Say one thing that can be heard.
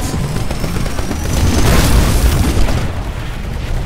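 Gunfire from a large machine gun rattles loudly nearby.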